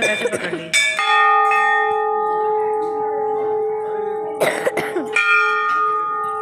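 A temple bell rings loudly and keeps ringing.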